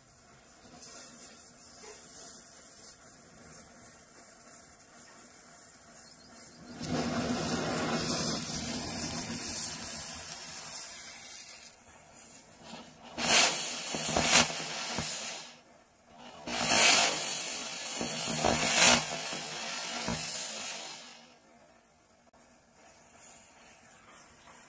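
Flames crackle and roar along a line of burning matches.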